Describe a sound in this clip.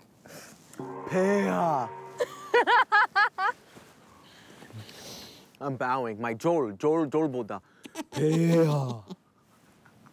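A young man speaks playfully close by.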